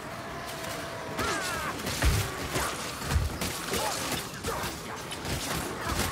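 Blades slash and thud into monsters in quick, heavy blows.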